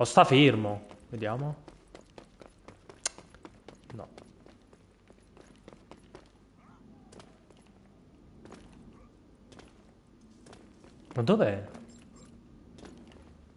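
Footsteps tap quickly on hard ground.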